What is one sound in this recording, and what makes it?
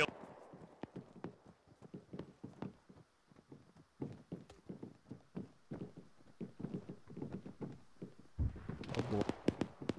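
Boots clang on metal stairs.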